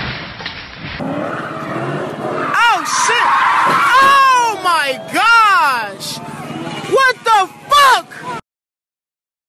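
A car engine revs hard, rising and falling in pitch.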